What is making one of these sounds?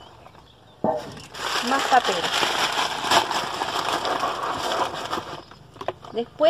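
Paper rustles and crinkles as it is handled up close.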